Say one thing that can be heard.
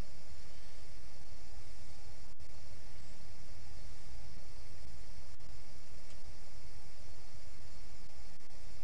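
A jet engine hums steadily from inside a cockpit.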